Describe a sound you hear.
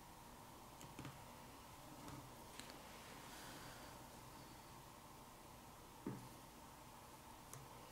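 Fingers tap and knock on a phone's casing on a hard surface.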